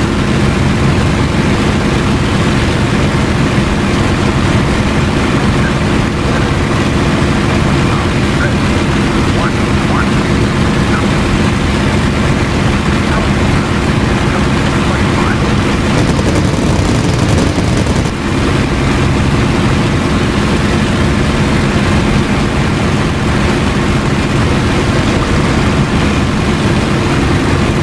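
Wind rushes past a cockpit canopy.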